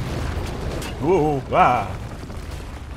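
A large creature roars.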